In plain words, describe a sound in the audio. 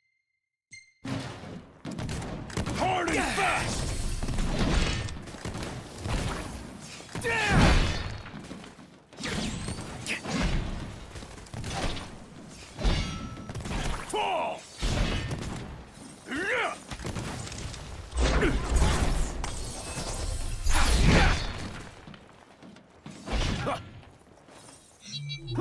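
Blades clash and ring with sharp metallic hits.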